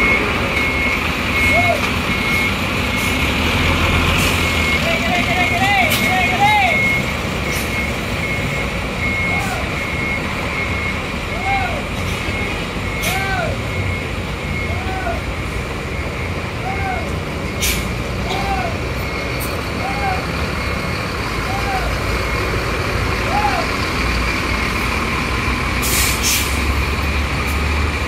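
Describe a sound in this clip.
A large bus engine idles with a low, steady rumble.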